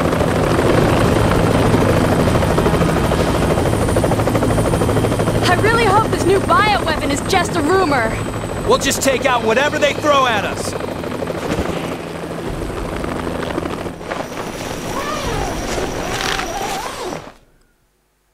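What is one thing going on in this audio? A helicopter's rotor thumps and drones steadily.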